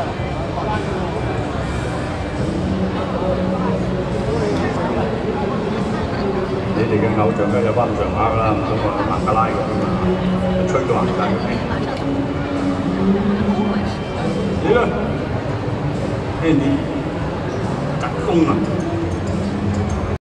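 A crowd murmurs and chatters nearby outdoors.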